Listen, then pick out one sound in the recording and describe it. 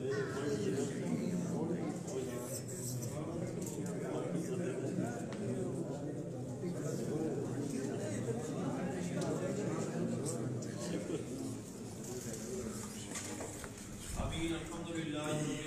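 A man speaks loudly and steadily.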